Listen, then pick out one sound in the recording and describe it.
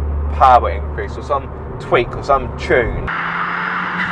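A car engine hums steadily inside the car.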